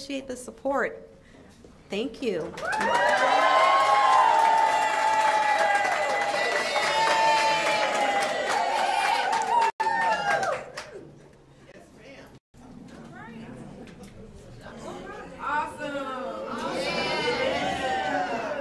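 A woman speaks through a microphone to a crowd.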